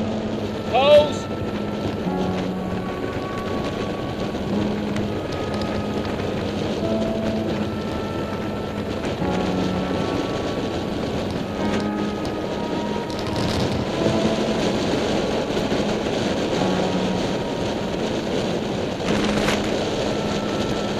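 Bicycle tyres hum on a paved road.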